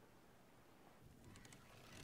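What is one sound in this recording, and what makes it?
A bowstring creaks as it is drawn.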